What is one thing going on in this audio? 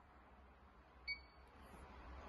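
A control panel button gives a short electronic beep.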